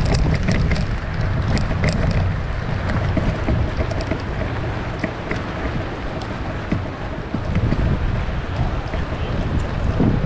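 Bicycle tyres roll and crunch over rough grass.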